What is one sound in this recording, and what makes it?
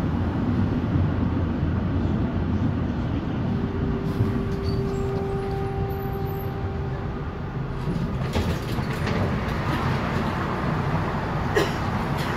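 A tram rumbles steadily along the tracks, heard from inside.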